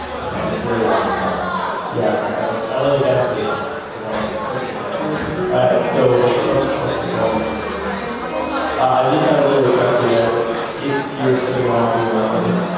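A young man sings into a microphone through loudspeakers in a large echoing hall.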